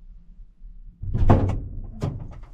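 A van door opens with a thud.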